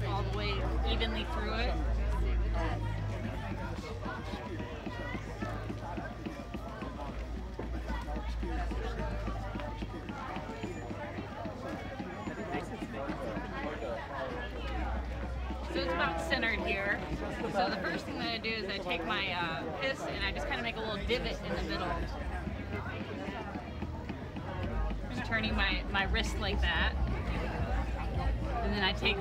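Wet clay squelches under hands on a spinning potter's wheel.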